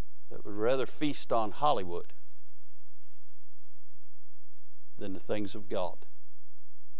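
A man speaks calmly into a microphone in a large, echoing room.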